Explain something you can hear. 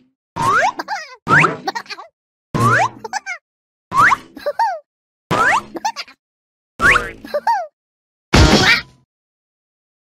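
A trampoline springs with bouncy boings again and again.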